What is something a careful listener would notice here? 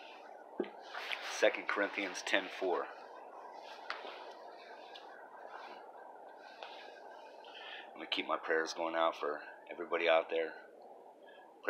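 A man talks close to a microphone, calmly and casually.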